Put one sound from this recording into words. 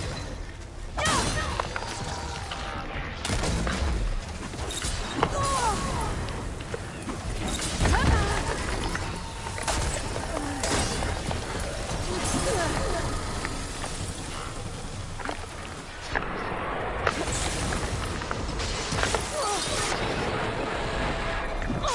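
Heavy blows and explosions crash and boom again and again.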